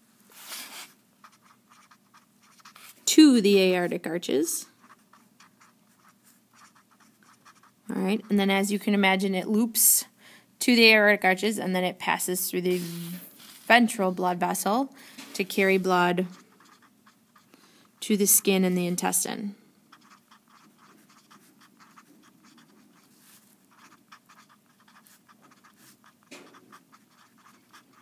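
A felt-tip marker squeaks and scratches across paper.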